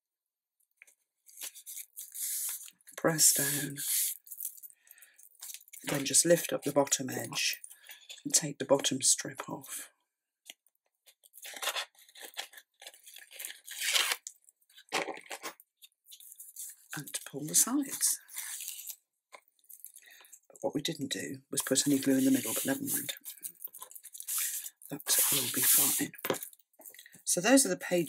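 Hands slide and smooth stiff paper with a soft rustle.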